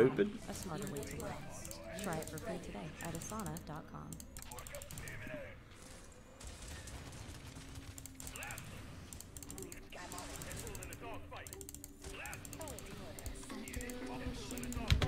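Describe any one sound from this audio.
Gunfire and explosions crackle from a battle game.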